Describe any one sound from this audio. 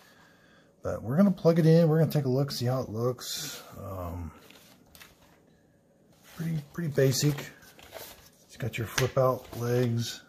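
A plastic keyboard knocks and rattles as it is lifted and turned over.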